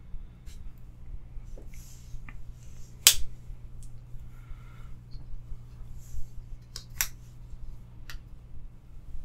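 Pocket knives clack as they are set down and picked up from a rubber mat.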